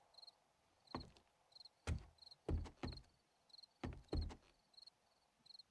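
Footsteps clunk on the rungs of a wooden ladder.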